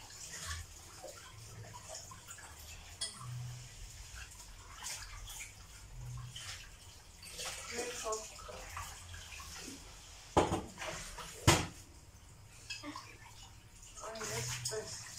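Kitchenware clinks and knocks close by.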